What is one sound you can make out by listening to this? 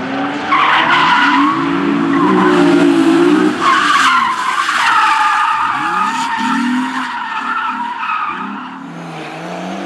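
Tyres squeal loudly on tarmac as a car slides.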